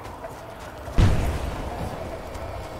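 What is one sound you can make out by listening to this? A loud blast booms nearby.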